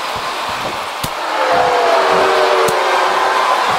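Bodies thud against each other in a wrestling ring.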